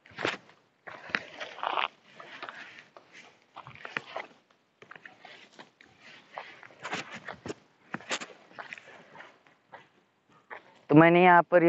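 Dry grass crunches and rustles underfoot.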